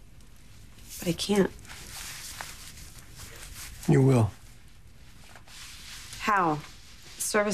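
A man speaks briefly nearby.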